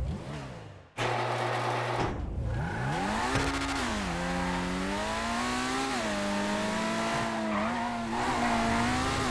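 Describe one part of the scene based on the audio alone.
A sports car engine revs and roars as it drives off.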